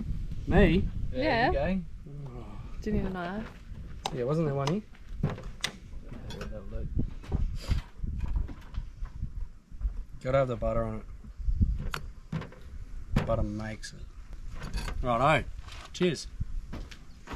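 Young men talk casually close by.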